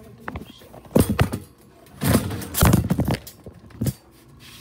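A metal shopping cart rattles and clatters.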